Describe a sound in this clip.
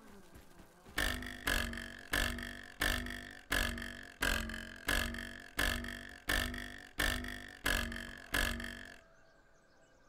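A pick strikes stone again and again at a steady pace.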